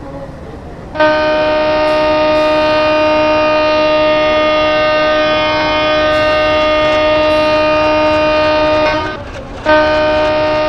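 A train horn sounds long and steady, breaks off briefly, then sounds again.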